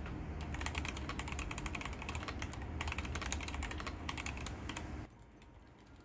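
Fingers type rapidly on a mechanical keyboard, with quick clicky keystrokes.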